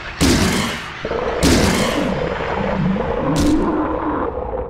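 A wooden plank strikes a body with heavy thuds.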